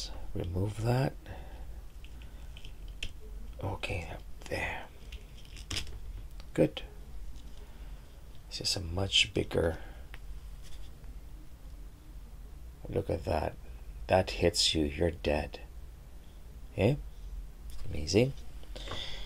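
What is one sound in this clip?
Small plastic toy parts click and snap.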